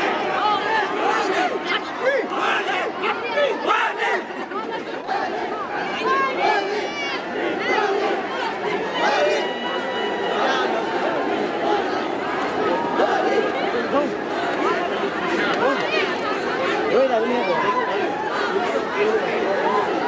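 A large crowd outdoors cheers, shouts and chatters all around.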